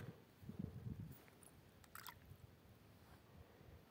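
A small coin plops into still water.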